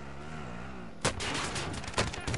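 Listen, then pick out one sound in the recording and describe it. An explosion booms suddenly.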